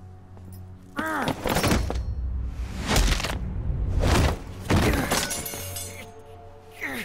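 A young woman cries out and grunts while struggling.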